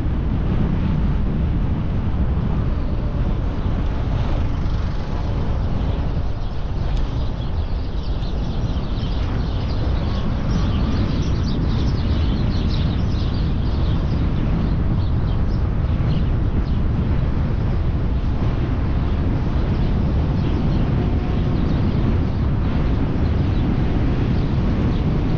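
Wind rumbles and buffets loudly across a microphone outdoors.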